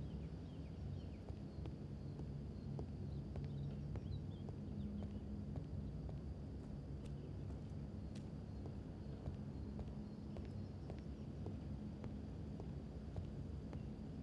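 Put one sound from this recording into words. Footsteps walk softly across the floor.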